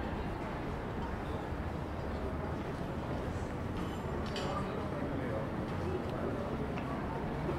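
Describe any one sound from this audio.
A crowd of people chatters faintly at nearby outdoor tables.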